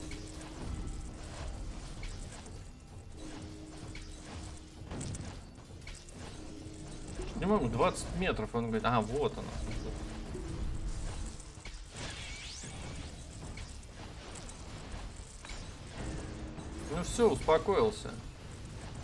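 Magic blasts and weapon hits crackle and thud in quick bursts.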